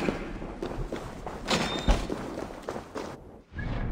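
A wooden chest lid creaks open with a thud.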